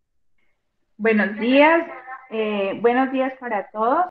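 A woman speaks warmly over an online call.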